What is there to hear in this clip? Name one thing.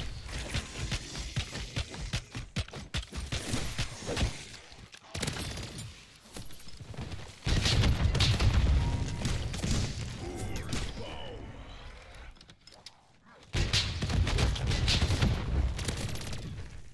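Rapid gunfire crackles in loud bursts.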